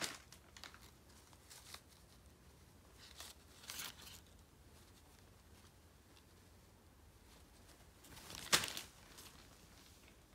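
Fabric rustles as a jacket is handled.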